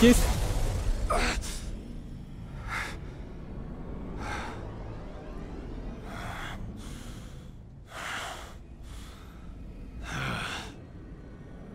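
Electric crackles and whooshing bursts sound in short surges.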